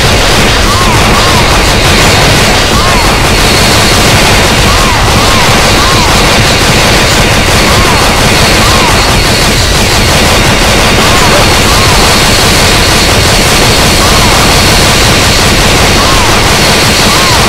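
Rapid gunfire rattles loudly, with short bursts of shots.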